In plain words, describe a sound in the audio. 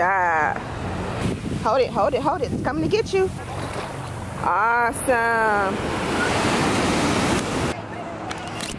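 Small waves wash and fizz up onto the sand.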